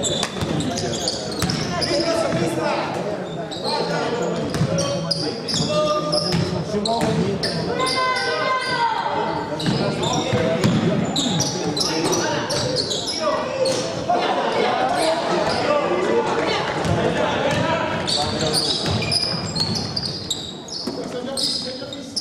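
Young men shout to one another across an echoing sports hall.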